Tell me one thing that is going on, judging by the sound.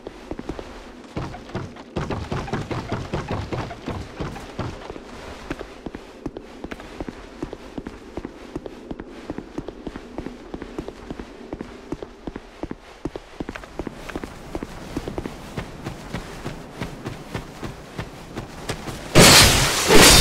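Footsteps thud in quick succession.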